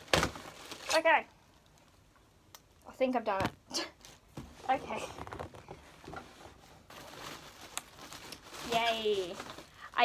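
Bubble wrap and packing rustle and crinkle.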